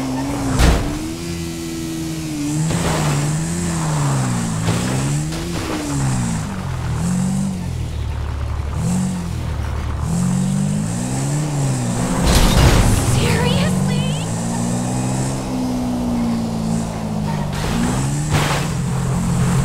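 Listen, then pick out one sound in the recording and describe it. A motorbike thuds heavily as it lands on the ground.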